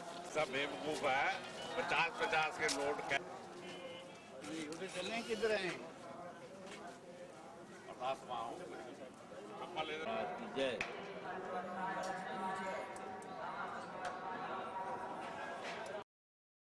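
A crowd of men talk and call out nearby, outdoors.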